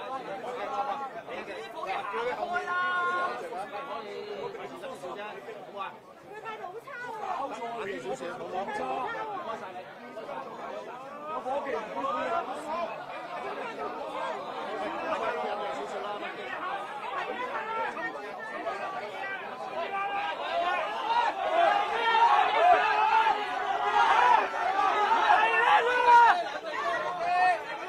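A crowd of men shout and argue close by, in a large echoing hall.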